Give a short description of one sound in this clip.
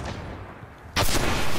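A video-game rifle fires.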